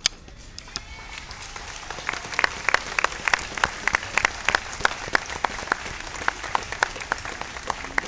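A crowd applauds outdoors, the clapping growing loud.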